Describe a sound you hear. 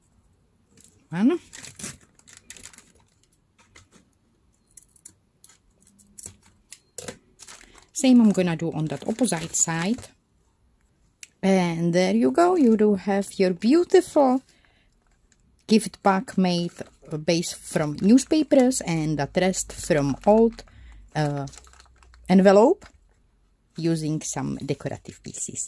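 A paper bag crinkles and rustles as hands handle it.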